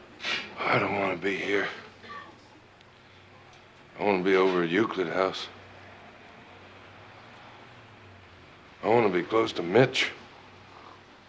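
A middle-aged man talks in a low, weary voice close by.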